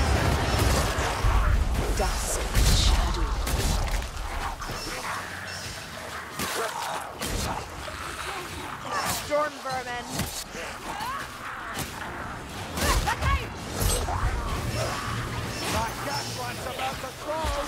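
Blades slash and strike flesh in quick bursts.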